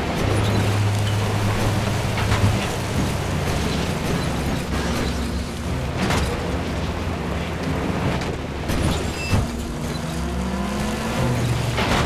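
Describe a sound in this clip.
A vehicle body rattles and bumps over uneven terrain.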